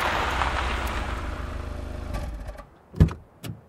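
A car engine hums as the car pulls up and stops.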